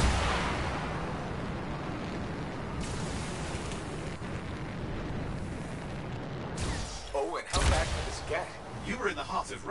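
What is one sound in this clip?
A deep roaring rush of jet thrusters runs steadily.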